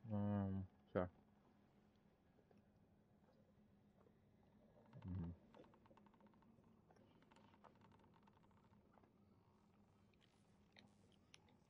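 Footsteps patter softly nearby.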